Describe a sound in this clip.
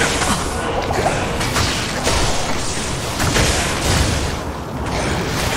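Magic spells burst and crackle in quick succession.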